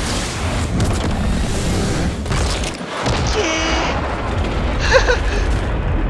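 A loud crackling boom rumbles through the sky.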